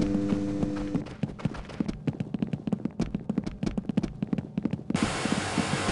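Footsteps clang quickly on metal stairs.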